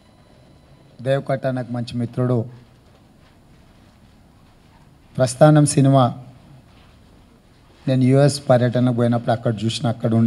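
A man speaks into a microphone in short, calm bursts with pauses between.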